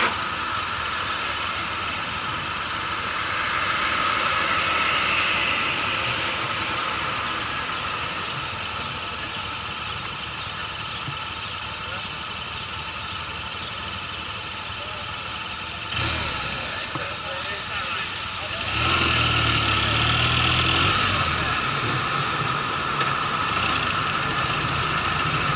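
A motorcycle engine idles and then revs as the motorcycle pulls away.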